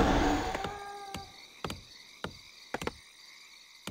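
A magic spell zaps and crackles in a game.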